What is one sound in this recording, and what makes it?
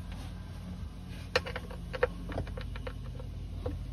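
A metal lever clicks and rattles as a hand works it.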